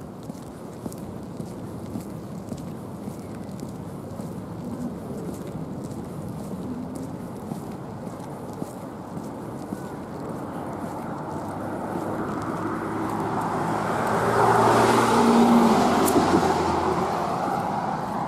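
Wind blusters steadily outdoors.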